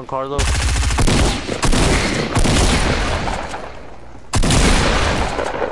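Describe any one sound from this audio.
Gunshots crack loudly in rapid bursts.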